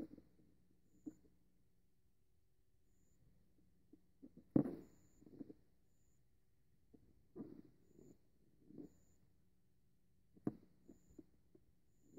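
A cat purrs softly close by.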